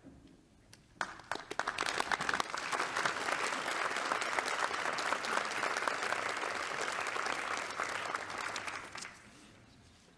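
A large audience applauds in an echoing hall.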